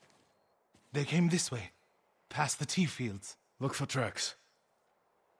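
A man speaks briefly in a low, calm voice.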